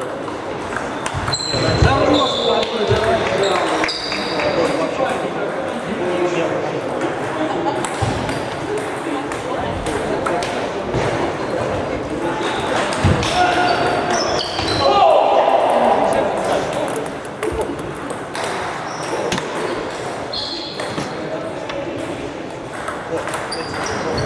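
A crowd of people chatters in the background of a large echoing hall.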